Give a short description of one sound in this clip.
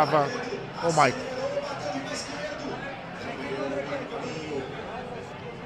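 A crowd of men and women chatter and call out loudly close by.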